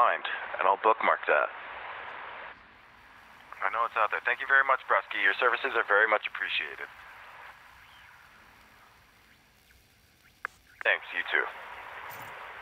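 A young man talks with animation into a headset microphone, heard close up.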